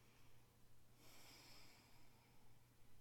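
A young woman breathes out deeply and slowly, close by.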